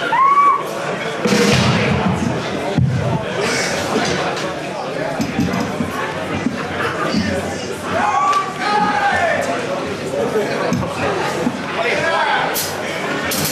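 A man shouts into a microphone through loudspeakers in a large echoing hall.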